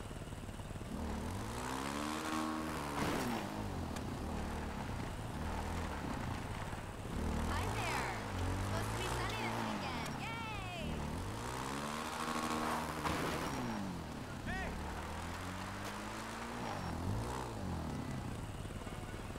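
A quad bike engine revs up and down repeatedly.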